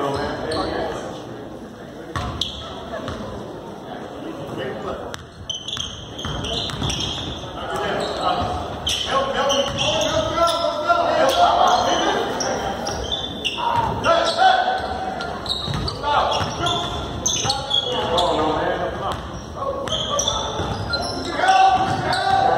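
Spectators talk and call out nearby.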